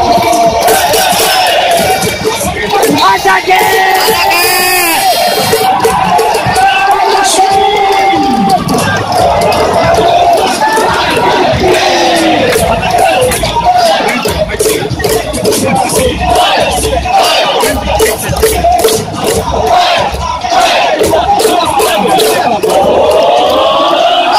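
A large crowd of fans chants and cheers loudly in an open stadium.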